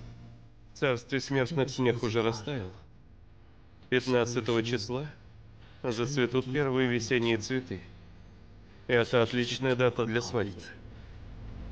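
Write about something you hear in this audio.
A young man speaks calmly and softly, close by.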